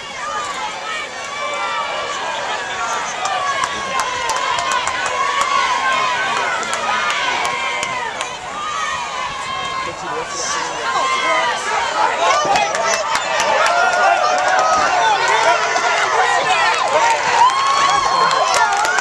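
A crowd of young men and spectators shout and cheer outdoors.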